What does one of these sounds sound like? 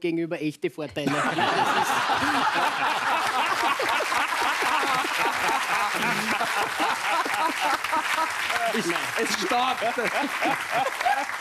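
A studio audience laughs and applauds loudly.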